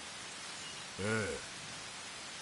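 A second man answers with a short, low grunt.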